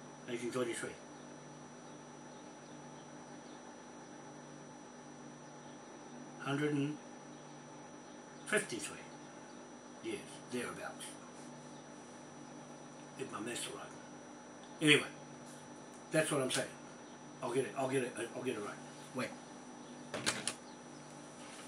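A middle-aged man speaks calmly close by, in short bursts with pauses.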